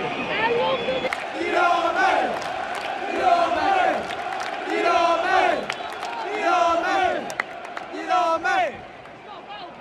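A large crowd chants in rhythm.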